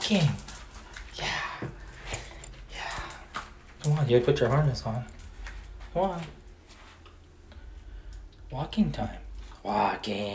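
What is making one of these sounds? A dog's claws click on a tile floor.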